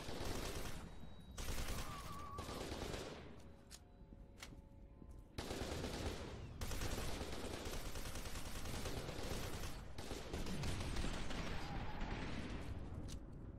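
Automatic rifle fire rattles in loud bursts.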